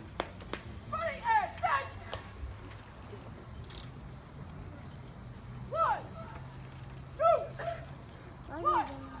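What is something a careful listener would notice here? Adult spectators nearby chatter briefly.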